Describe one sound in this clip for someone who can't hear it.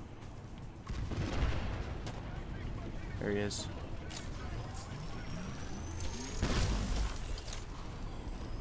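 Gunfire rattles and bangs.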